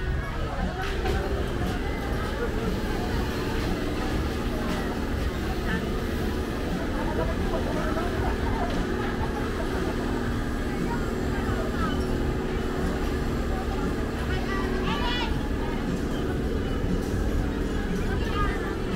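A fairground ride whirs and hums as it spins.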